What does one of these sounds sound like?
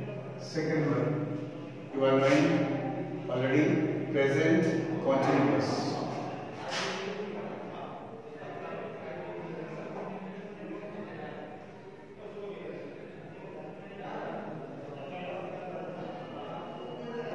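A man lectures aloud in an echoing room.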